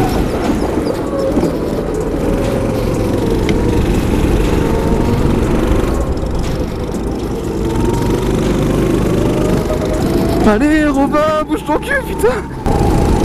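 Wind buffets a moving kart.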